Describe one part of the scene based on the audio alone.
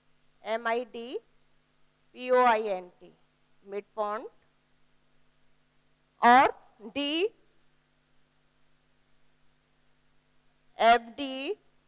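A woman speaks calmly through a microphone in short phrases.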